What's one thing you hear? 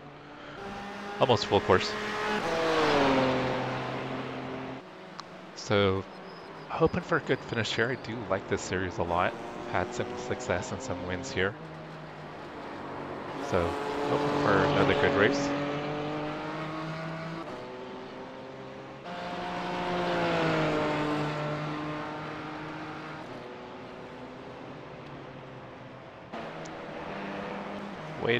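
A racing car engine roars, revving up and dropping in pitch as it shifts gears.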